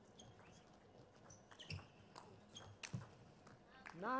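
A ping-pong ball clicks quickly back and forth off paddles and a table.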